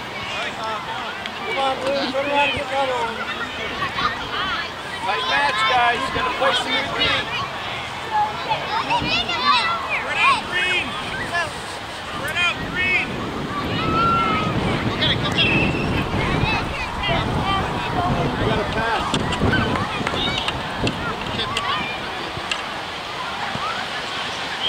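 Children shout and call out excitedly across an open field.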